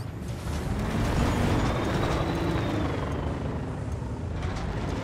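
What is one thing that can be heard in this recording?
A heavy truck engine rumbles steadily as the vehicle drives along.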